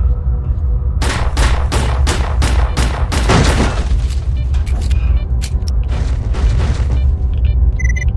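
A pistol fires a rapid burst of shots.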